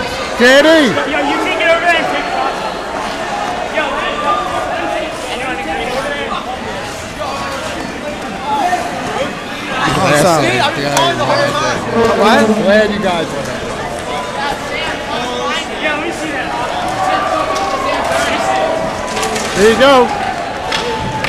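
Young men talk and laugh excitedly close by.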